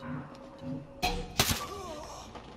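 A rifle fires a single loud shot close by.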